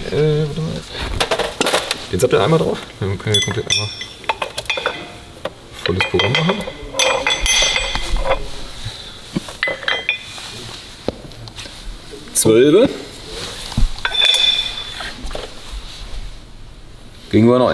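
Metal brake parts clunk onto a scale.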